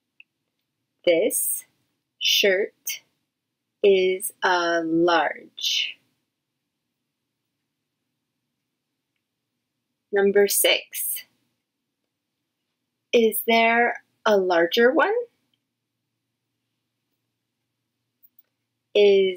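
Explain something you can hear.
A woman speaks calmly and warmly into a close microphone, with pauses.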